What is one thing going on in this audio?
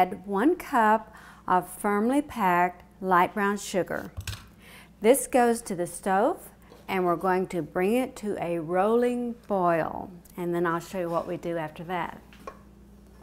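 A woman speaks calmly and clearly close by.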